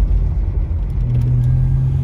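A windshield wiper sweeps across the glass.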